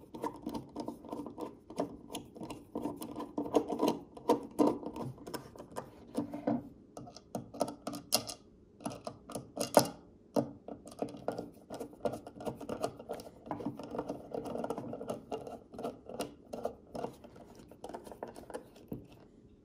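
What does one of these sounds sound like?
A driver scrapes and clicks as it turns a small screw.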